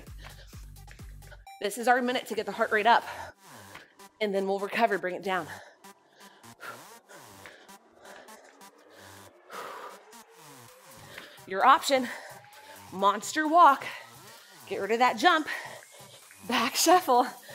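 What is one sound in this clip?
Feet land and shuffle on a mat in quick jumps.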